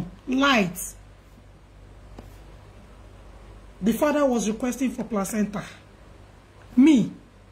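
A woman speaks with animation close to a microphone, in short bursts with pauses.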